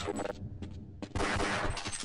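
A pistol fires.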